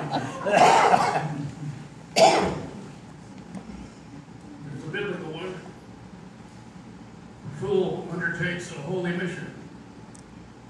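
An elderly man speaks slowly into a microphone, reading out with pauses.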